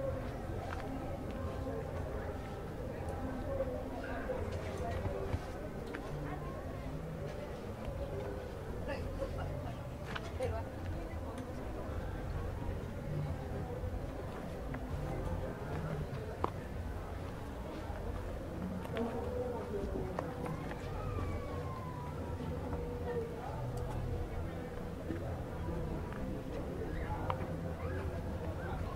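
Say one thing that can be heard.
A crowd of people murmurs at a distance outdoors.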